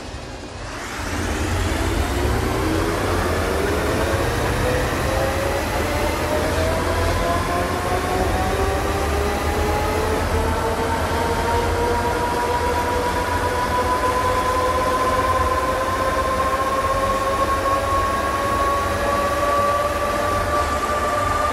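A bus engine drones and steadily rises in pitch as the bus speeds up.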